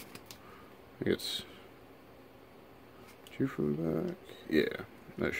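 Trading cards rustle and slide softly between fingers.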